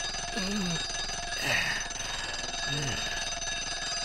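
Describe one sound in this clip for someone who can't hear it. A young man groans in discomfort.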